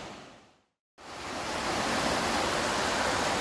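A stream rushes and splashes over rocks close by.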